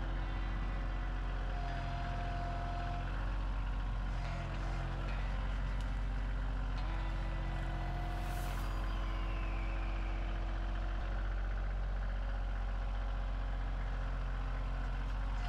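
Hydraulics whine as a tractor's loader arm moves.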